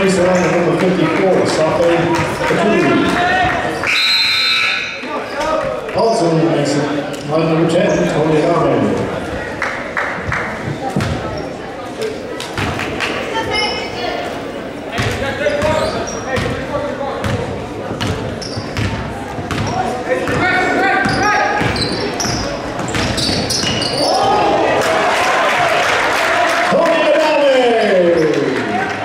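A crowd of spectators chatters and cheers loudly in a large echoing gym.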